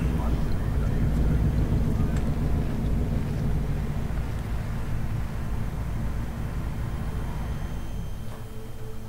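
A car engine rumbles low as a car rolls slowly closer.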